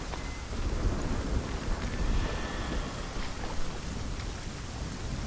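Footsteps walk slowly on stone.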